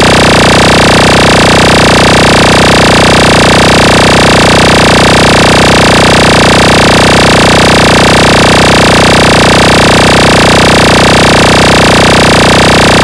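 Loud music with heavy, booming bass plays through large speakers.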